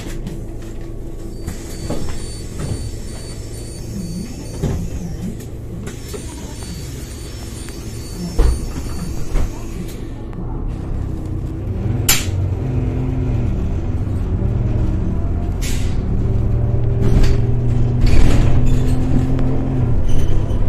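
A bus engine hums and rumbles steadily, growing louder as the bus pulls away.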